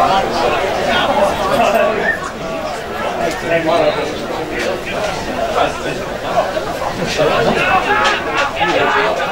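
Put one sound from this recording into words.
Players call and shout to each other across an open field outdoors.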